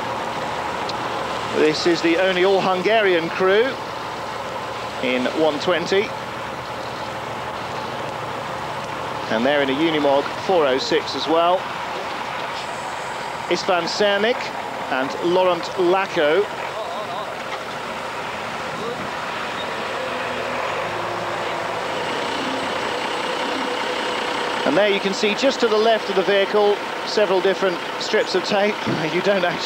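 A truck engine rumbles and strains as it climbs through rough ground.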